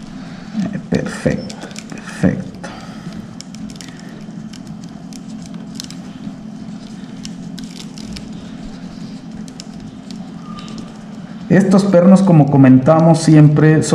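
Metal pliers click and scrape against a small metal part.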